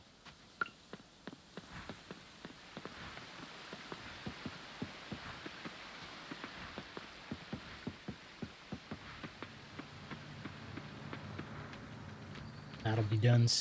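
Footsteps patter quickly along a path in a game.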